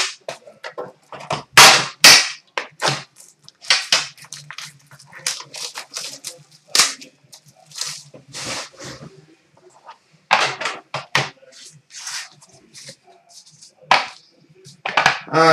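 Card packs rustle and tap.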